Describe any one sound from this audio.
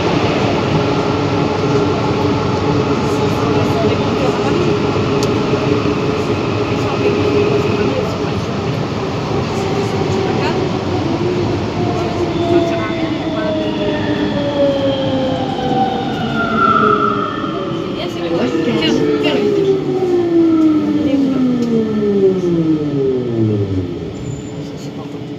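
A rubber-tyred automated metro rumbles through a tunnel.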